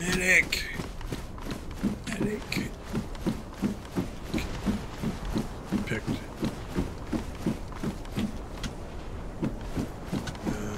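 Footsteps clang steadily on a metal walkway.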